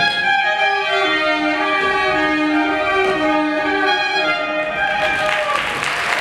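A small wind ensemble plays a lively tune in a large hall.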